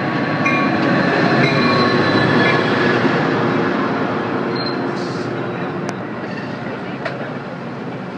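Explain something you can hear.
A passenger train rumbles and clatters past close by, slowly fading.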